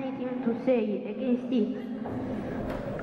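A boy speaks into a microphone, heard through a loudspeaker in an echoing hall.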